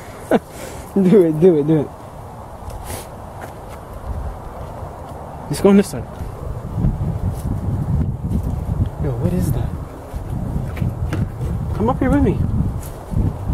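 A young man speaks casually nearby.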